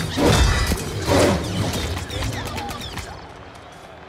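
Game weapons fire in rapid, loud bursts.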